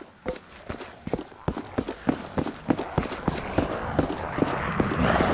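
Footsteps thud steadily on a hard floor in an echoing corridor.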